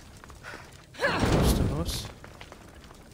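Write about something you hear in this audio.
Fire bursts into flame with a loud whoosh and roar.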